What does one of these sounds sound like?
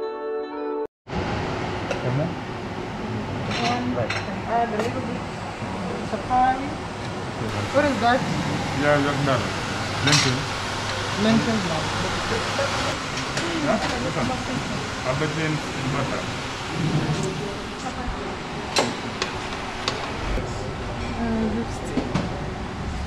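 Several people talk at once in a busy room.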